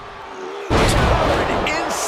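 A body slams down hard onto a wrestling ring mat with a loud thud.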